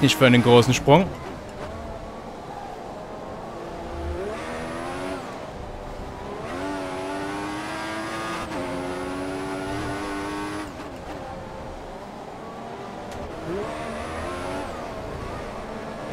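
A racing car engine whines loudly, rising and falling in pitch as it shifts gears.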